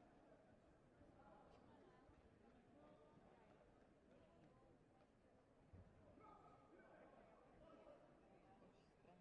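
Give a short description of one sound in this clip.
Many voices murmur and chatter throughout a large echoing hall.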